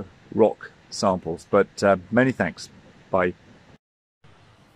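A middle-aged man talks close up, explaining calmly.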